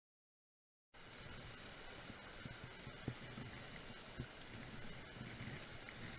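A shallow stream trickles over rocks.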